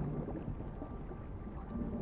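Bubbles gurgle and rise underwater.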